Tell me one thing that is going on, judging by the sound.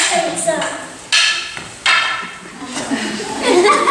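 Wooden sticks clack together.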